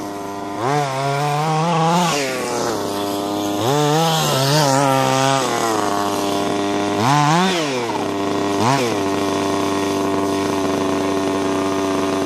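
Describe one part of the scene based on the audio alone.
A small model car engine whines and revs up and down in sharp bursts.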